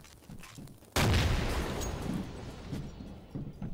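A loud explosion booms and its rumble slowly fades.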